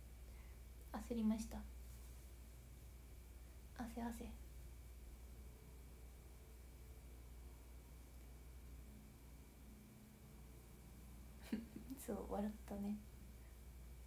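A young woman speaks softly and cheerfully in short bursts, close to a microphone.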